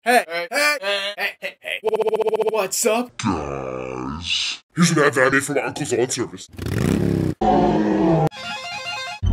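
A young man sings loudly into a microphone.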